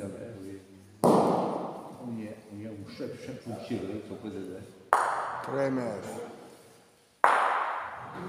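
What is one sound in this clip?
Wooden balls knock together sharply.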